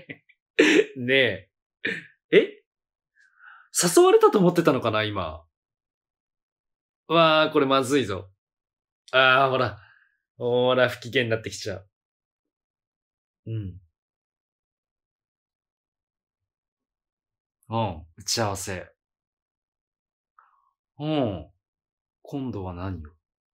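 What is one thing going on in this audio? A man speaks animatedly into a close microphone, in short bursts with pauses.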